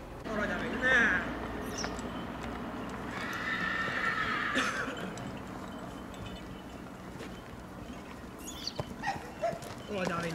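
A horse's hooves thud softly on dirt as it walks.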